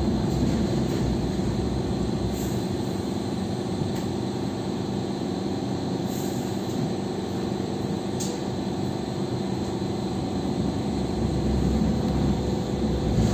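A train carriage hums and rumbles steadily as it rolls along the track.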